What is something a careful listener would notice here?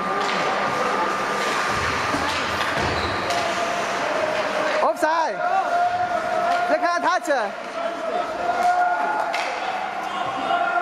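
Skate blades scrape across the ice in a large echoing rink.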